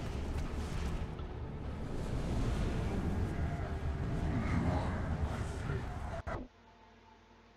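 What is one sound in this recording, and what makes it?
A deep rushing whoosh swells and roars.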